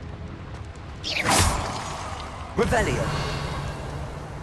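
A fire bursts alight with a loud whoosh.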